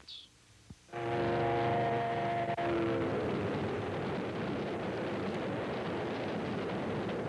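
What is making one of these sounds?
A train rumbles past on the tracks.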